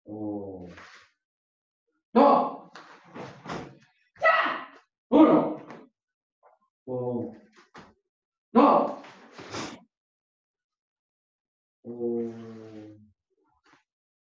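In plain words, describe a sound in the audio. A woman shouts sharply with her strikes, close by.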